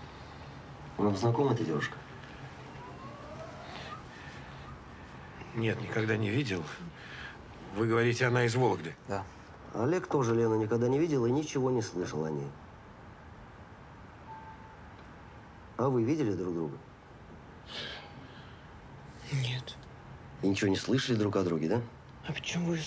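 A middle-aged man speaks calmly.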